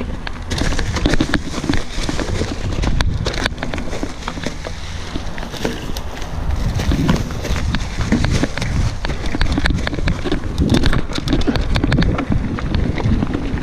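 A bicycle rattles and clatters over rocks and bumps.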